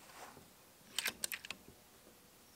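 A rifle bolt clicks as it is worked back and forth.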